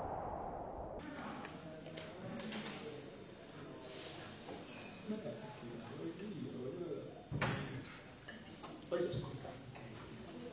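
A second teenage boy answers close by.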